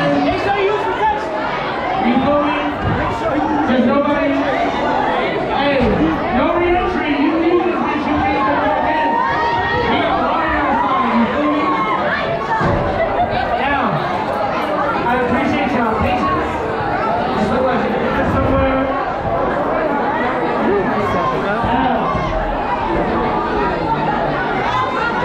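A crowd of young men and women talks and shouts loudly all around.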